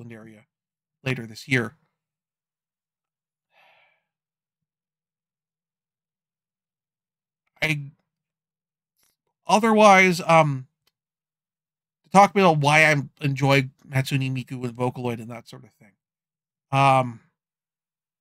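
A man talks casually and close to a microphone, in short bursts with pauses.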